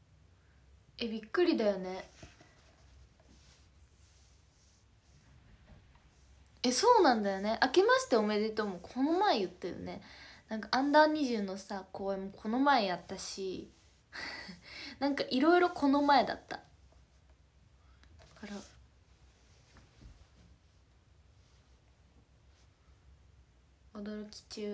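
A young woman speaks casually and close to a microphone, in short bursts with pauses.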